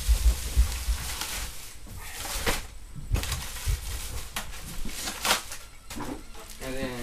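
Cardboard boxes rustle and thump as they are moved.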